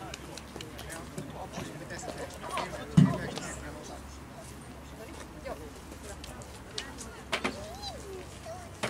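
A young man speaks calmly into a microphone outdoors.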